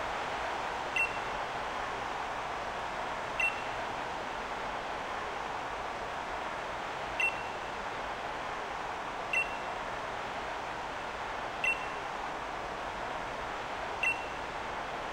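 A short soft chime sounds several times.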